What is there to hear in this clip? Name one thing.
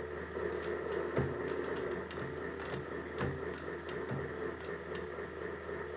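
Arcade game sound effects bang and crackle rapidly.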